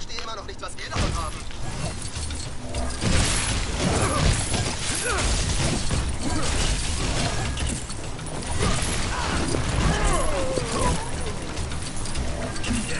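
Zapping blasts and thuds ring out in a video game fight.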